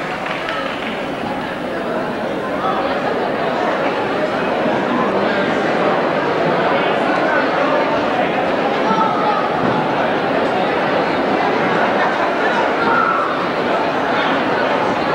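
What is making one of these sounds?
A drummer plays a drum kit with cymbals.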